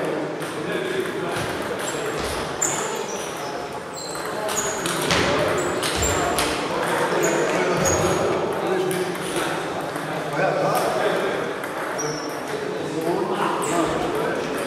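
Table tennis balls click back and forth on tables and paddles.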